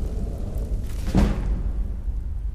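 A book's pages rustle as it opens.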